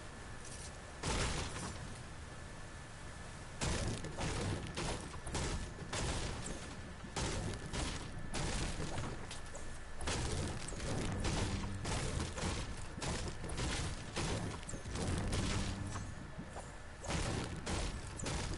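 A pickaxe strikes wood again and again with hollow knocks.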